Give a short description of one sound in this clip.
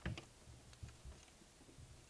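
A hand taps and rubs against a window pane.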